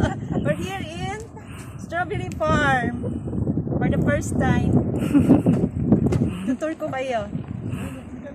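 A young woman talks excitedly close to the microphone.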